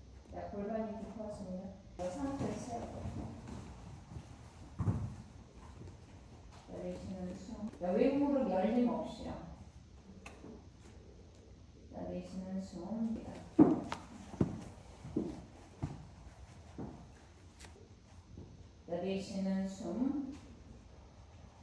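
A young woman talks calmly, close by, in short phrases.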